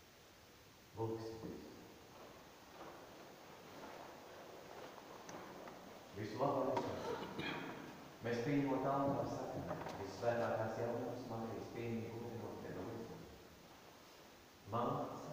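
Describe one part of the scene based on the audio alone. A man chants a prayer aloud in an echoing hall.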